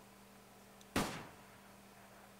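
A revolver fires a single loud shot.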